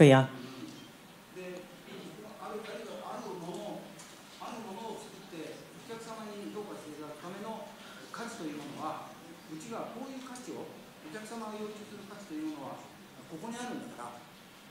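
An elderly man speaks calmly, quieter and farther away.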